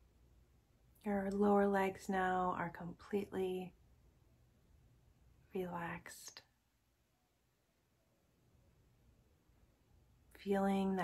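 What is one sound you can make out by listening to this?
A young woman speaks calmly and softly, close to a microphone, with pauses.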